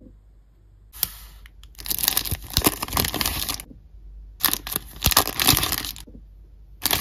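Plastic packaging crinkles as it is opened.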